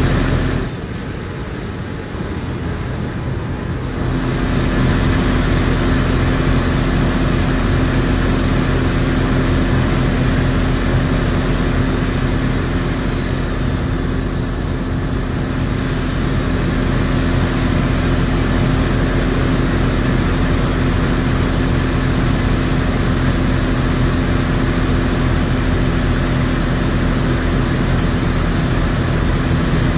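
Tyres roll and road noise rushes past.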